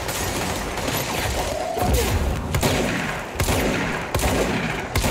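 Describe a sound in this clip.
Sparks and debris crackle.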